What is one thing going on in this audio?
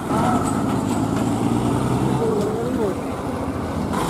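A diesel tipper lorry engine rumbles as the lorry pulls away.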